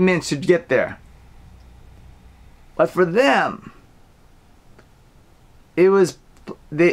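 A man speaks calmly and warmly into a close microphone, with short pauses.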